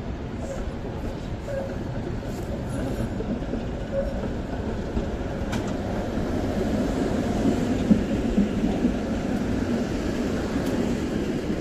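A tram approaches and rumbles past close by, its wheels rolling on the rails.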